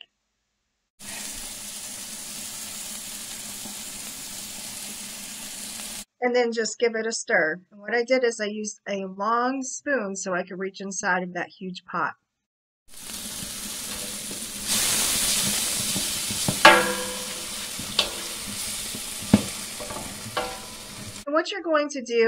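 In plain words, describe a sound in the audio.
Food sizzles in a pot.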